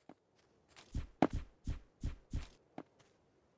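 A pickaxe knocks repeatedly against a block until it breaks.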